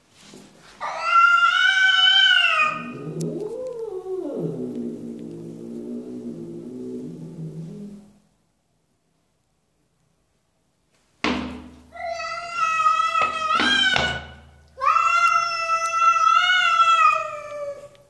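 A cat meows loudly and insistently, close by.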